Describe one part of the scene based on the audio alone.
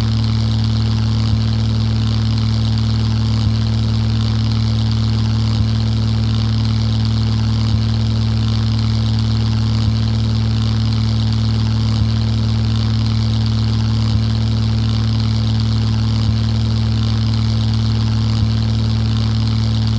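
A propeller plane's engine drones steadily throughout.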